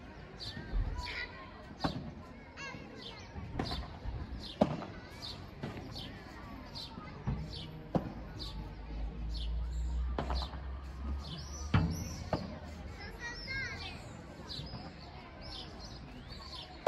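Footsteps scuff on the court.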